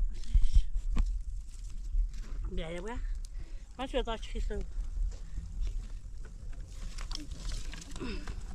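Twigs snap and rustle as they are handled.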